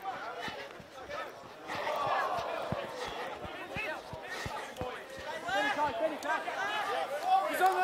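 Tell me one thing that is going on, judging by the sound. Young men shout and call out to each other outdoors at a distance.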